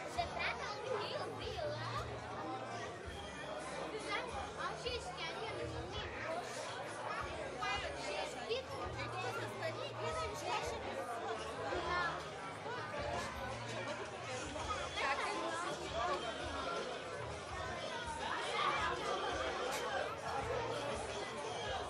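Many voices of children and adults chatter around in a busy room.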